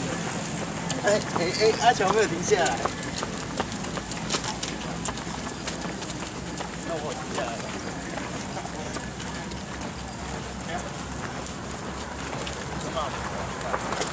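A group of adults talk among themselves.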